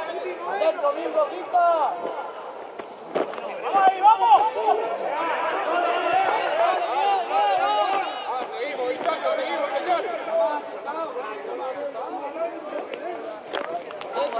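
Several men shout and call out together at a distance outdoors.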